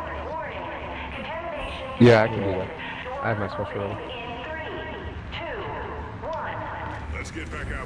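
A loudspeaker voice announces a warning.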